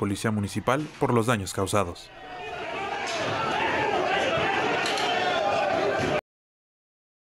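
A crowd of men shouts and chants loudly in an echoing hall.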